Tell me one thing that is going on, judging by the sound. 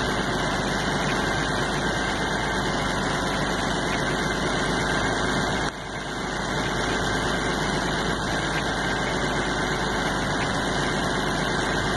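A tractor engine runs loudly nearby.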